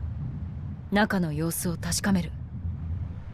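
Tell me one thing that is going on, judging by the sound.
A young woman speaks coolly and firmly, close up.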